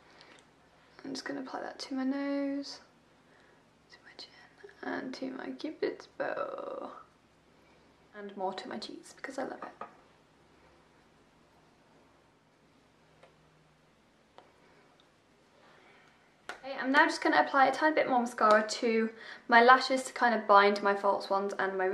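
A young woman talks calmly, close to a microphone.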